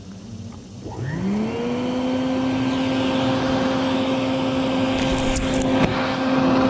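Wasps buzz loudly close by.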